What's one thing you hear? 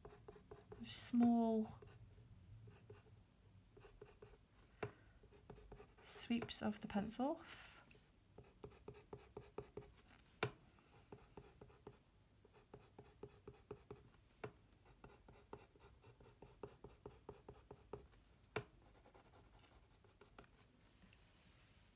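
A pencil scratches and scrapes softly on paper.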